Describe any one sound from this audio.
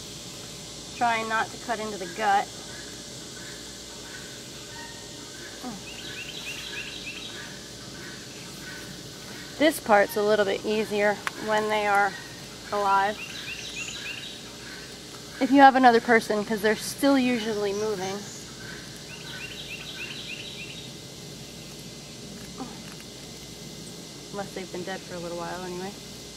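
A woman talks calmly close by, in short bursts.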